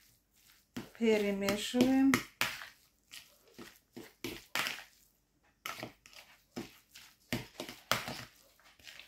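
Minced food squelches as hands knead it in a bowl.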